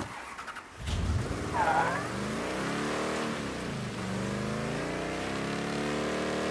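A truck engine starts and revs up and down as the truck drives off.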